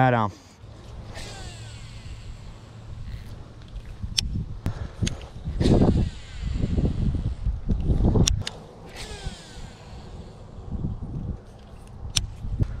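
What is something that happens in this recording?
A fishing reel clicks and whirs as the line is wound in.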